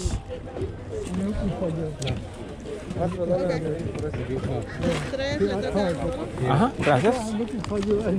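A middle-aged woman talks nearby.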